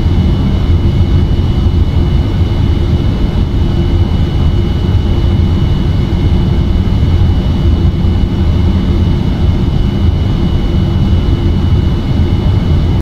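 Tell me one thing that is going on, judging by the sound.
A jet engine rumbles and whines steadily as an airliner rolls along a runway.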